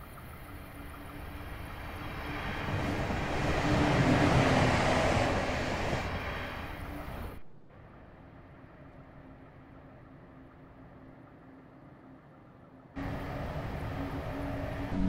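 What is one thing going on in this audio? A diesel train engine hums steadily.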